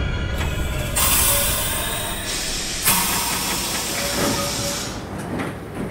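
Train air brakes hiss loudly in bursts.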